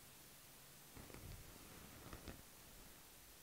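Clothing rustles softly against a mat as a woman sits up.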